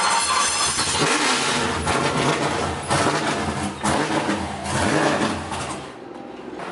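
A car engine rumbles and revs.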